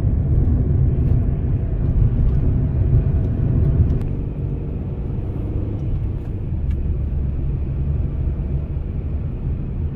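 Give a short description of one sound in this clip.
Tyres rumble steadily on the road, heard from inside a moving car.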